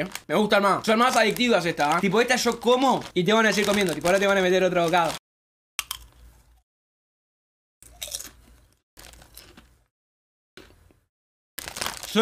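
A chip bag crinkles.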